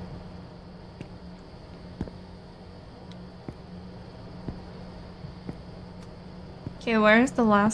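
Footsteps tap slowly on hard ground.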